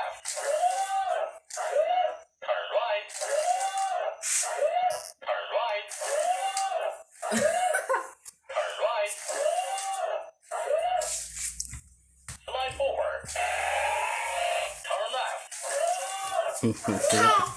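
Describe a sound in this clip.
A toy robot gives out repeated electronic chirping sounds.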